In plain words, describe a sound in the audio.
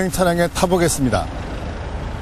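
A man speaks calmly into a microphone outdoors.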